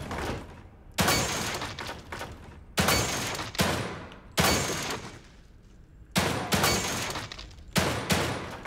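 Gunshots ring out one at a time with a short echo after each.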